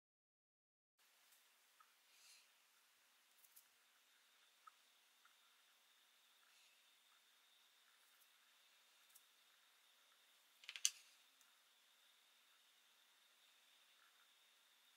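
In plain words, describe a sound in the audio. Fingers softly handle and turn small wooden blocks close by.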